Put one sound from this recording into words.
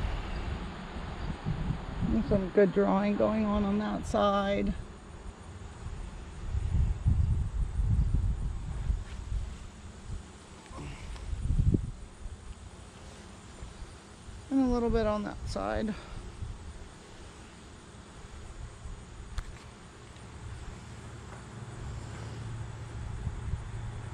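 Bees buzz around a hive.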